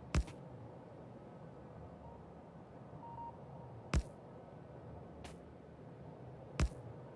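A train rumbles along a track.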